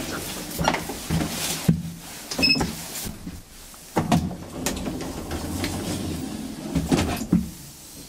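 A traction elevator hums and rumbles from inside the car as it travels.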